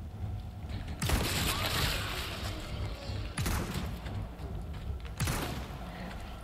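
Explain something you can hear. A handgun fires several shots, each with a short echo.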